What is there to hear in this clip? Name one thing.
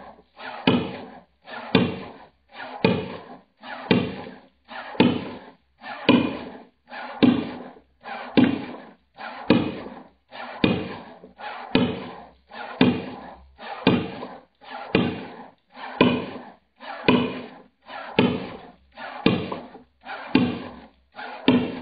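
A ping-pong ball bounces again and again on a wooden board, ringing a little after each hit.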